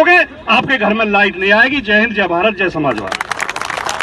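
A man speaks loudly and with animation to a crowd outdoors.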